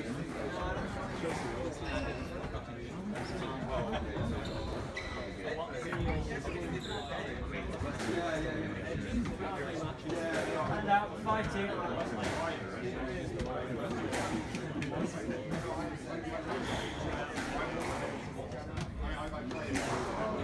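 A squash ball smacks off rackets and walls in an echoing court.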